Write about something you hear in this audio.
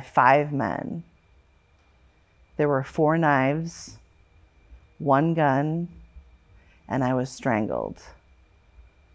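A middle-aged woman speaks with feeling into a close microphone, in short phrases with pauses.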